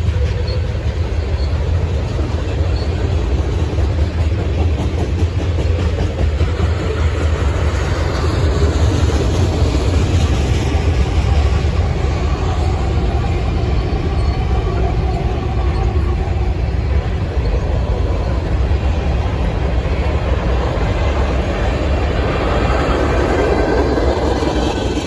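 A long freight train rumbles past, its wheels clattering on the rails.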